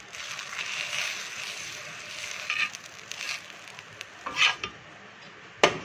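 A metal spatula scrapes across a pan.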